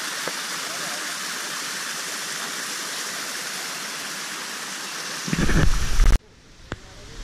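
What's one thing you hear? A small waterfall splashes steadily nearby.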